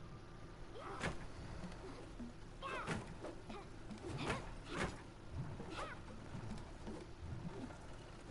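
Swords swing and strike a wooden training post.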